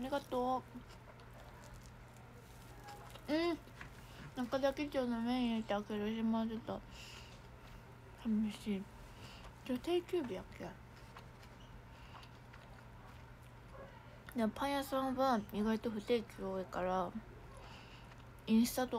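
A young woman chews food close by.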